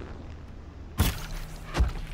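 A bowstring snaps as an arrow is loosed.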